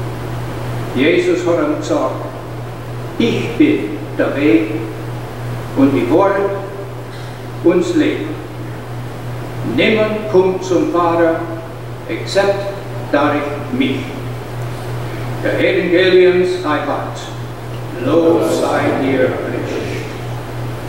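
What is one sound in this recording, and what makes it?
A congregation of men and women sings together in phrases, echoing in a large hall.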